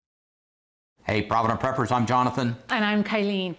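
A middle-aged woman speaks cheerfully close by.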